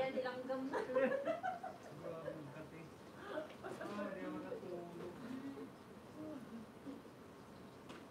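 A young woman giggles close by, muffled behind her hands.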